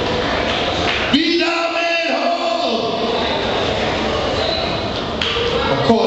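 A crowd of people sings together in a large echoing hall.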